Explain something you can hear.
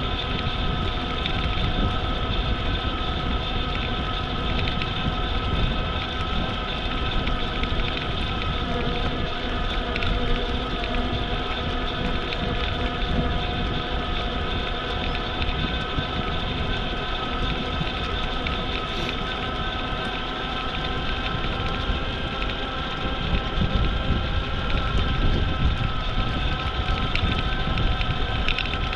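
Small wheels hum over a paved path.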